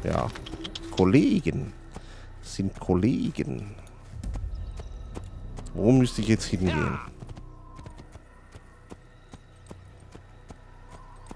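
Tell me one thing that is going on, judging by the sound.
A horse gallops with steady hoofbeats.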